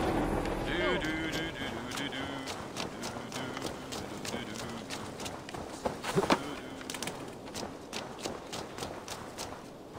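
Footsteps crunch quickly on dirt and wooden boards.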